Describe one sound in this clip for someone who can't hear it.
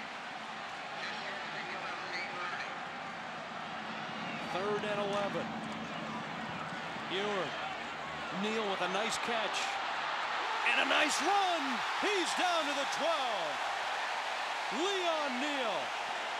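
A large stadium crowd roars and cheers, growing louder.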